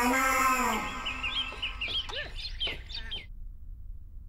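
Birds chirp and twitter outdoors.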